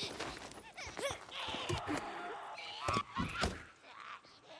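A machete strikes a plastic crate with sharp knocks.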